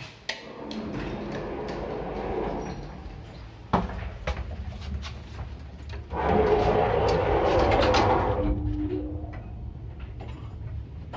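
An elevator hums as it moves.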